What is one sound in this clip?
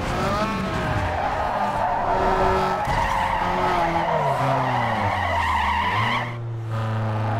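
Tyres screech loudly while sliding.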